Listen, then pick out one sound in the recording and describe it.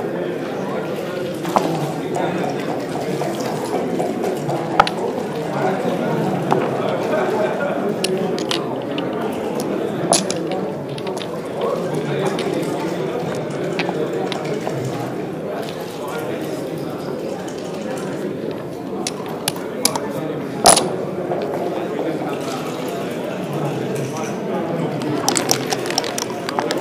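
Plastic game pieces click and clack against a board as they are moved.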